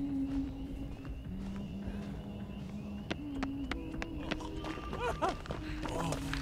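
Footsteps hurry over grass and dirt.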